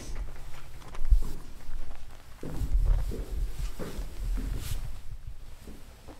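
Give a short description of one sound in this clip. Footsteps thud on metal steps.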